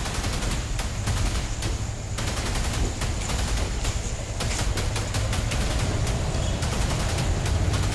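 Boots tramp on a paved street as soldiers march.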